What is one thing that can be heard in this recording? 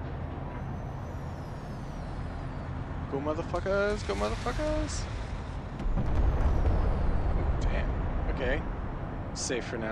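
Explosions and gunfire boom from a battle.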